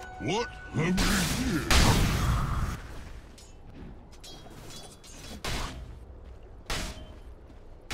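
Magic spells whoosh and crackle in a video game battle.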